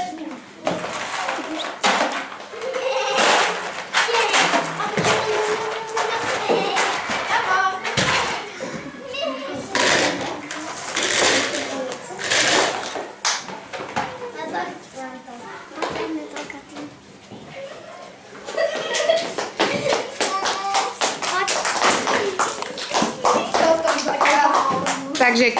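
Children chatter and call out close by.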